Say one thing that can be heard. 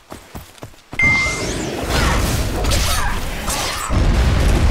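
Weapons strike and magic bursts loudly in a fight.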